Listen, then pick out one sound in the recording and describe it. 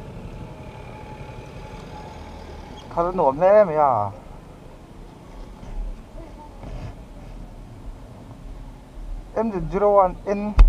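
A motorcycle engine rumbles low as the bike rolls slowly along.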